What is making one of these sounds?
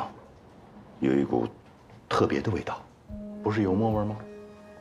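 A young man asks a question calmly nearby.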